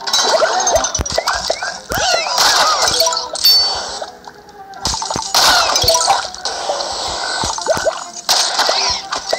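A harpoon whooshes and snaps as it is fired.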